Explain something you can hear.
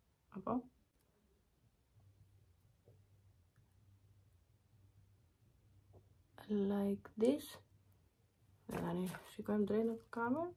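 A young woman speaks calmly and close by, in short bursts.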